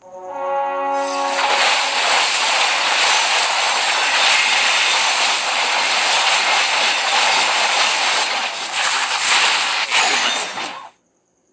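Battle effects clash and blast loudly in a game.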